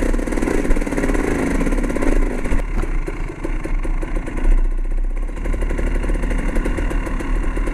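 A bicycle freewheel ticks rapidly.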